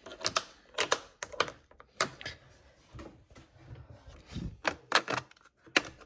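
Plastic makeup cases clack and rattle as a hand sorts through them.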